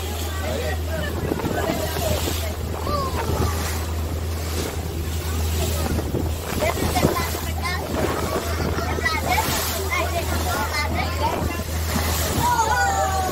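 Waves splash and rush against a moving boat's hull.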